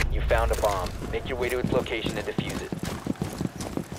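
Heavy boots thud on hard ground as soldiers run.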